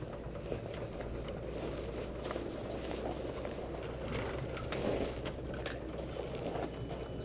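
A dirt bike engine idles with a rough, steady rumble close by.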